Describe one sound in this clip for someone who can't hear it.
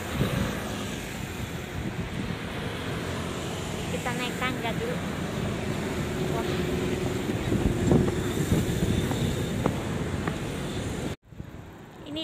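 A young woman talks close to the microphone.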